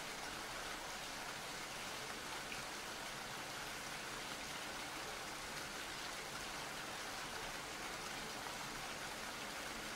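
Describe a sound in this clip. Rain patters steadily against a window.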